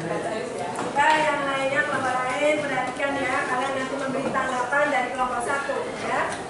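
Young women sing together in unison.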